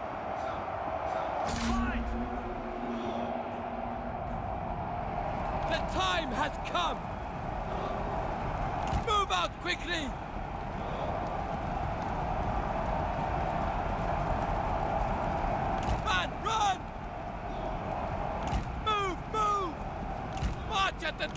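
A large battle roars with clashing weapons.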